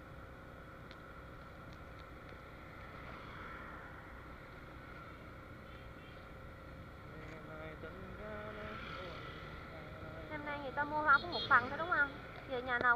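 A scooter engine hums steadily while riding.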